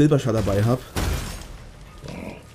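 A sword clashes against a creature.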